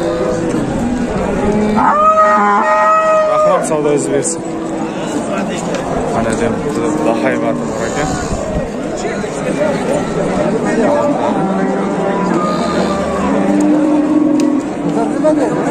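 A crowd of men talks loudly all around outdoors.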